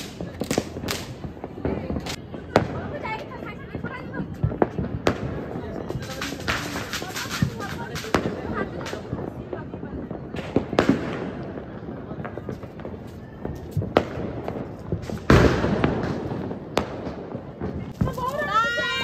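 Fireworks pop and crackle in the distance.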